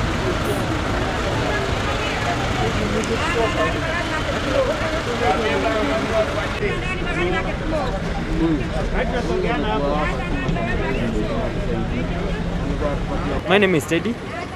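A crowd of people chatters around.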